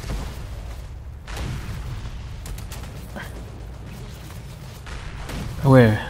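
Footsteps rustle through dry leaves on the ground.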